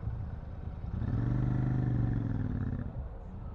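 A motorcycle engine revs up and pulls away.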